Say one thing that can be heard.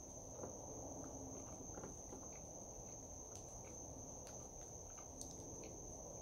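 A young man chews food wetly, close to a microphone.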